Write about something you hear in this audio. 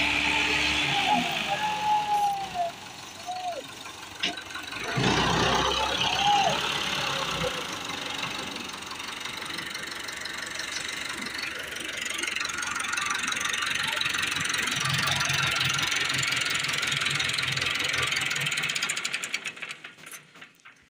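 A tractor engine idles nearby with a steady rumble.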